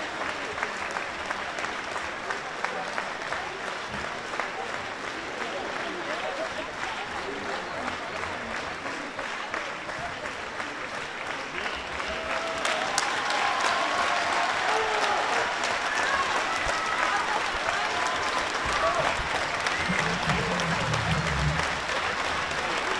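A large audience applauds steadily in a big hall.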